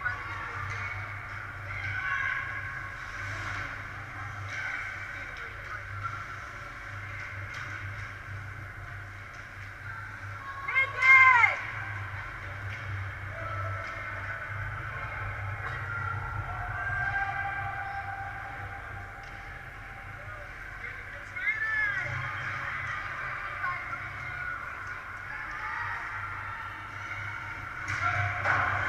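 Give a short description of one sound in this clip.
Young players shout to each other from across a large echoing rink.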